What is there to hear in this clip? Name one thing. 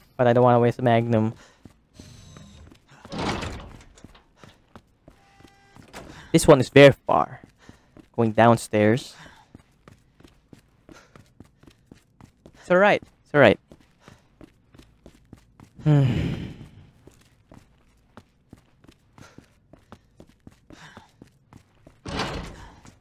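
Footsteps tap steadily on a hard floor and stairs.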